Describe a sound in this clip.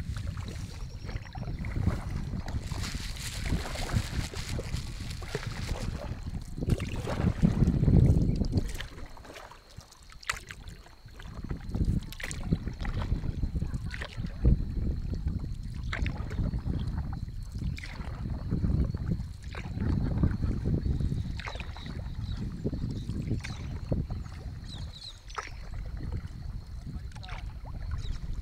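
Small waves lap and splash against a kayak's hull.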